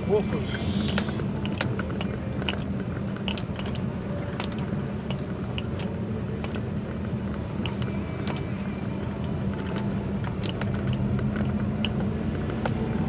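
A car engine hums, heard from inside the car.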